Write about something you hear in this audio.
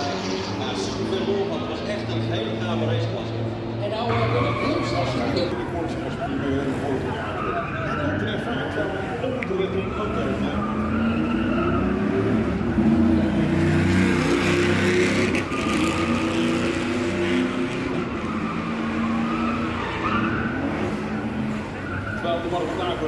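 A race car engine roars and revs.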